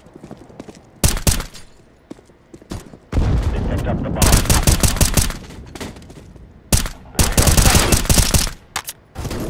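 Rifle shots fire in short, loud bursts.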